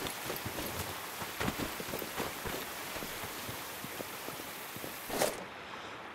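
Footsteps crunch quickly through dry leaves and grass.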